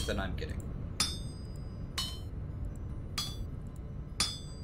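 A hammer strikes metal on an anvil with ringing clangs, about once a second.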